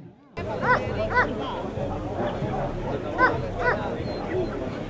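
Dogs bark now and then.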